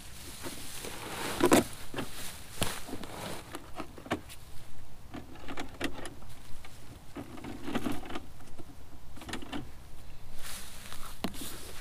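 Hands knock and scrape on a plastic box.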